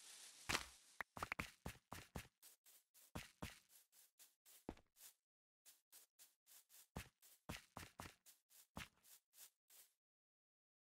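Footsteps patter over grass and dirt in a video game.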